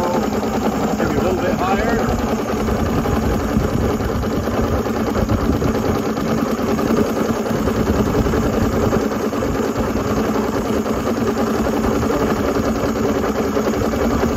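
An outboard motor idles steadily with a loud rumble close by.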